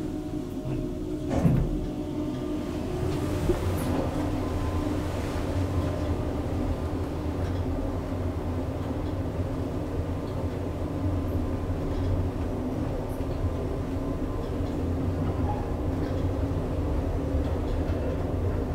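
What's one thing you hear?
An elevator hums steadily as it travels between floors.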